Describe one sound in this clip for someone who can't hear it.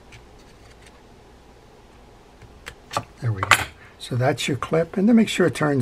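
Pliers grip a metal part with a sharp click.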